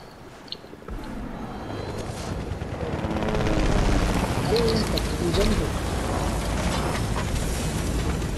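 A helicopter's rotor whirs loudly nearby.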